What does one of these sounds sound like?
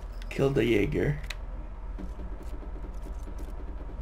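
A rifle is reloaded with metallic clicks.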